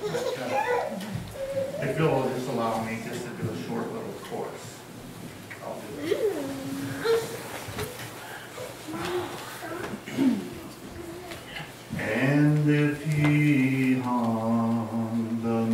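A man speaks to an audience through a microphone in a hall with some echo.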